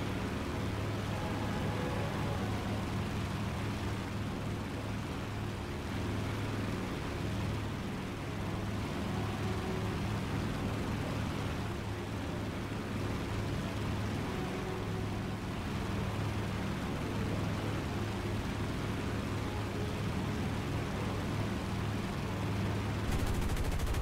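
Propeller engines drone steadily and loudly.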